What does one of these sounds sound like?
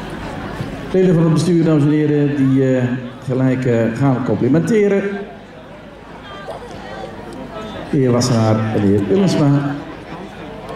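A man speaks loudly over a loudspeaker.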